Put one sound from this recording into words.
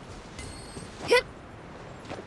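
A bright chime rings once.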